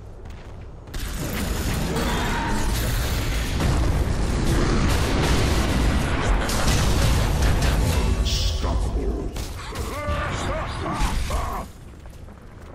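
Magic spells crackle and boom in a fierce fight.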